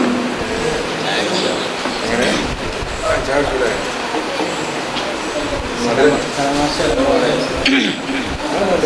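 A man speaks into a microphone through a loudspeaker in an echoing room.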